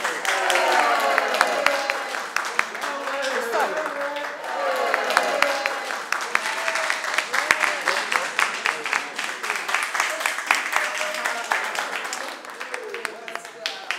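A crowd claps hands in quick rhythm.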